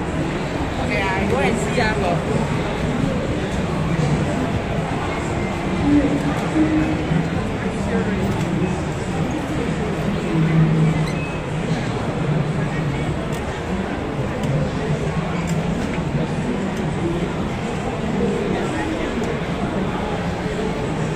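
A crowd of people chatters all around in a large echoing hall.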